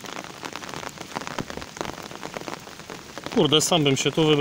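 Rain patters steadily on the surface of a lake.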